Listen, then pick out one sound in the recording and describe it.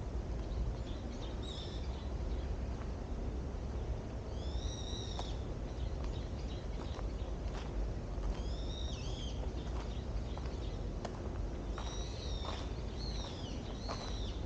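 Wind rustles the leaves of trees outdoors.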